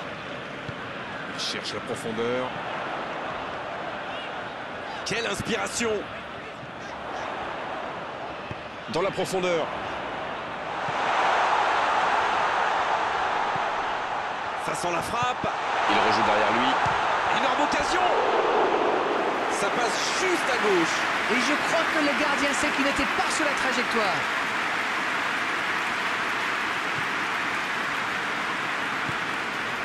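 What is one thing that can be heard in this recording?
A large stadium crowd roars steadily, swelling louder partway through.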